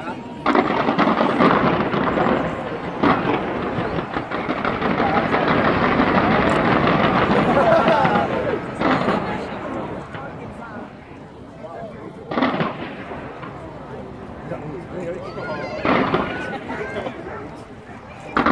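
Fireworks crackle and fizz at a distance.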